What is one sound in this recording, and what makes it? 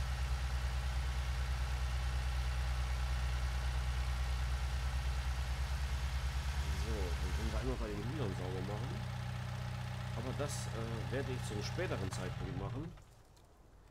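A small loader's engine drones steadily.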